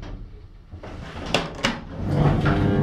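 An elevator door slides open.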